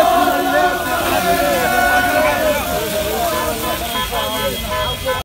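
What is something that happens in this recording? A crowd of young men chant and shout loudly nearby.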